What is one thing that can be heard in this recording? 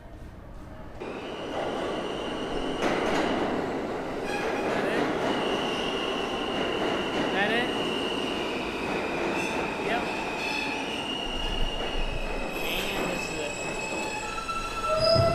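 A subway train rumbles into the station and screeches along the rails.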